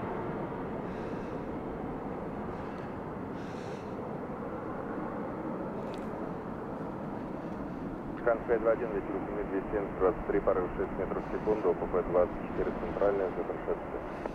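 A jet airliner's engines roar steadily overhead as it descends.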